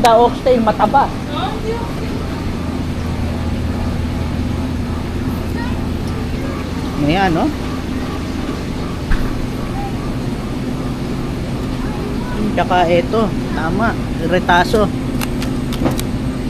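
A refrigerated display case hums steadily.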